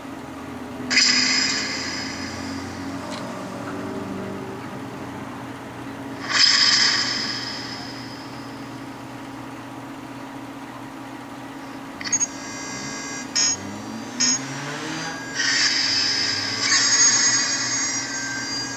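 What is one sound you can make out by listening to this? A small phone speaker plays short electronic jingles and chimes.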